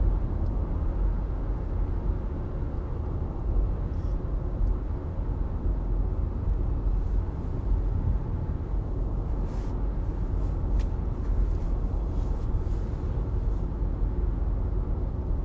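A car cruises at highway speed, heard from inside with a low road rumble.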